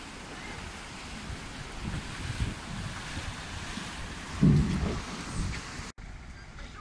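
Water splashes as two men push a wooden boat through the shallows.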